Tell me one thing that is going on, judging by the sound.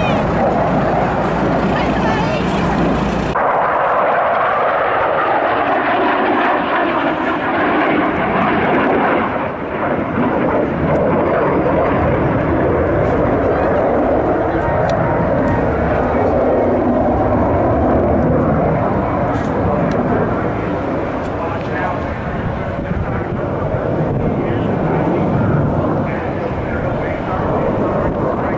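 A jet engine roars loudly overhead, rising and falling as the plane passes.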